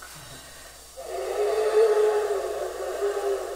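A man plays breathy, held notes on a small wind instrument close by.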